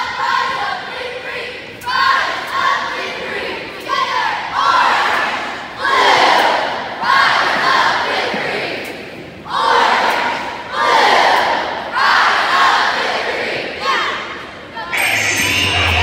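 A young girl shouts a rhythmic cheer loudly in an echoing hall.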